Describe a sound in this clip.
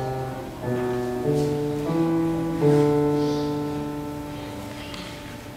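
A piano plays a few final notes that ring out in a room.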